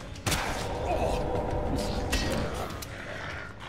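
A creature snarls and growls.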